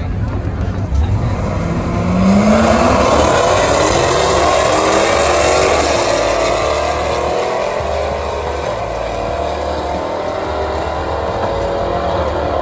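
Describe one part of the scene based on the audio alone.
Race car engines roar to full throttle and rev higher as the cars speed away.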